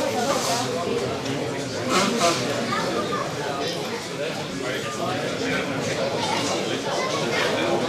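Several men talk and chatter nearby in an echoing hall.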